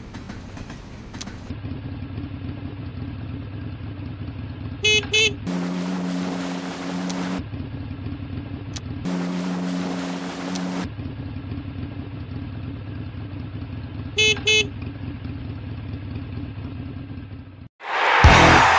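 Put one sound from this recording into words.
A small scooter engine hums steadily.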